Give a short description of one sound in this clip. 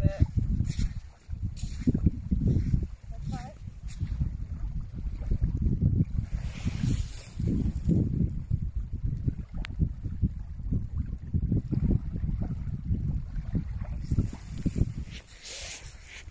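Wind gusts roughly across the microphone outdoors.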